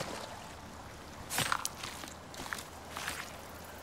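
A knife slices into an animal carcass.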